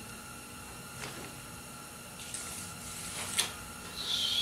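A small metal tool clicks in a man's hands.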